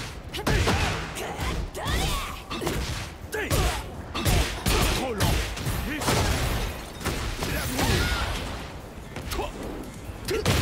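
Punches and kicks land with heavy thuds and smacks in a fighting game.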